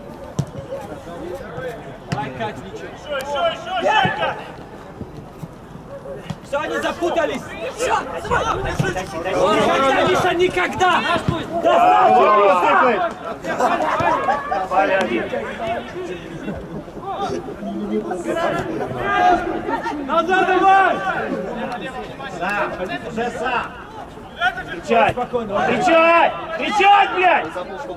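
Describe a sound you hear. A football thuds as it is kicked on an outdoor pitch.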